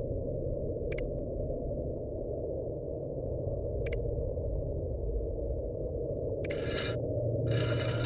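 Wooden tiles click into place one by one.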